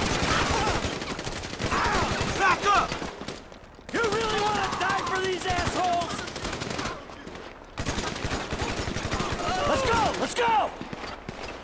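Rapid gunshots crack repeatedly.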